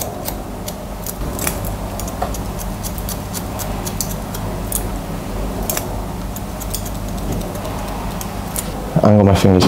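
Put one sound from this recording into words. Scissors snip through wet hair with quick, crisp clicks.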